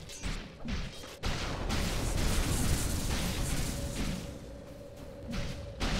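Electric zaps crackle sharply.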